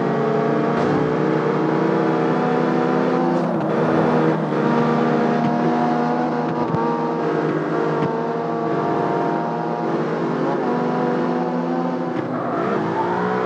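A car engine roars steadily at high revs.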